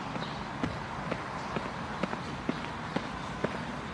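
Footsteps tap on hard paving.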